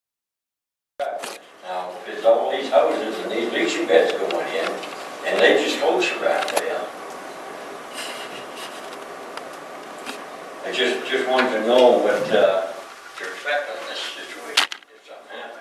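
A man speaks through a microphone in a room with some echo.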